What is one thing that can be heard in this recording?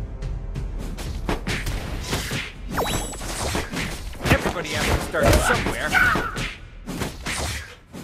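Sharp hits and magic blasts crackle as fighters clash in a game.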